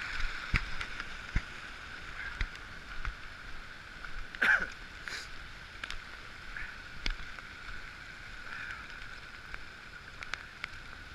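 Tyres crunch and splash over a wet gravel track.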